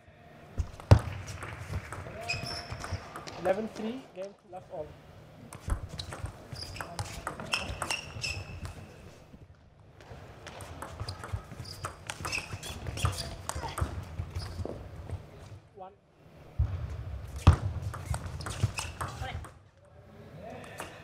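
A table tennis ball clicks sharply back and forth off paddles and a table.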